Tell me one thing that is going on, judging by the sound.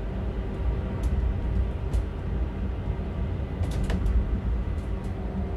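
Wheels click and knock over rail joints.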